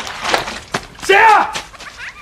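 A man shouts a question in surprise.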